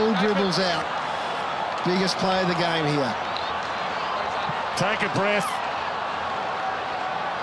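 A large crowd murmurs and cheers across an open stadium.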